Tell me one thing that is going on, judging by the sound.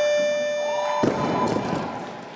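A heavy barbell crashes down onto a platform.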